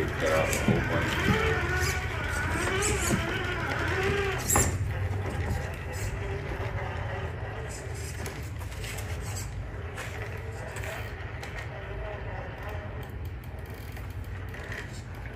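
A small electric motor whines softly as a toy truck crawls.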